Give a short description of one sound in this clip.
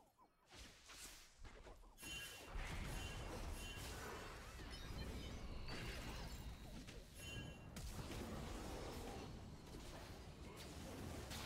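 Magic spells crackle and blast amid clashing combat sounds.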